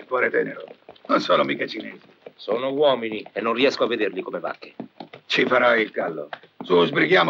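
A young man answers quietly.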